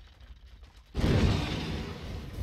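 A fiery blast whooshes and bursts.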